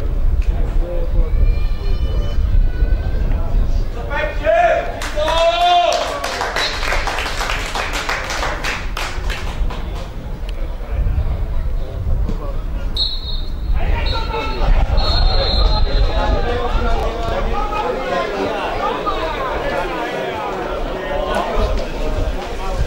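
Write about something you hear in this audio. Men shout and argue nearby.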